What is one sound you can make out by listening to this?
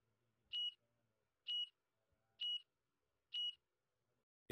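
A countdown timer beeps four times at an even pace.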